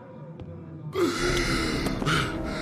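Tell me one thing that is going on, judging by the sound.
A man screams loudly up close.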